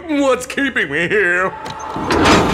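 A young man cries out in strain.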